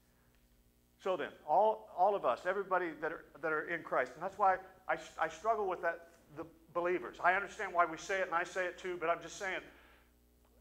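An older man speaks with animation through a microphone.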